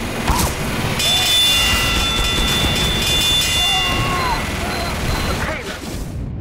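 Flames roar from a flamethrower.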